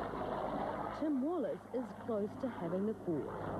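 An older man talks nearby.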